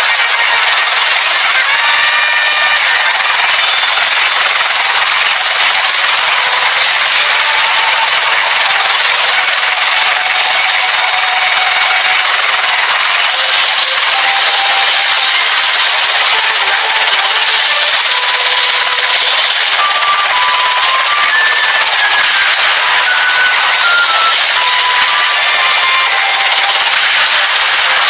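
A helicopter rotor whirs steadily.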